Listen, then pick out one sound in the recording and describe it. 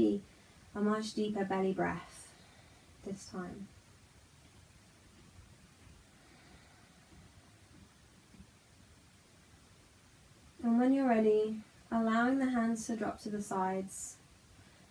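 A woman speaks calmly and softly close by, with pauses.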